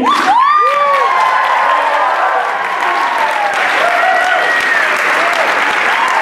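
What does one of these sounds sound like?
A group of young men and women sings together in a large hall.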